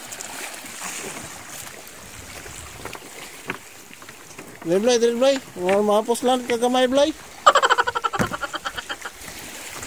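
Water splashes as a fish thrashes beside a boat.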